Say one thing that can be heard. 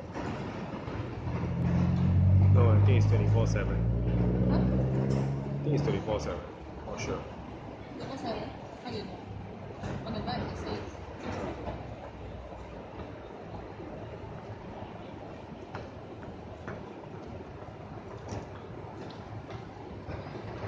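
City traffic hums steadily below.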